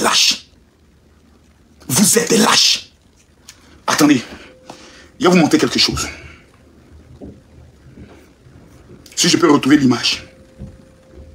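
A man speaks close by in short, lively bursts.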